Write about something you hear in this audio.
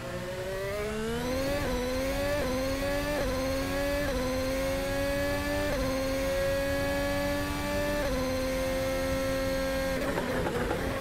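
A racing car engine screams and climbs in pitch, dropping briefly at each gear change.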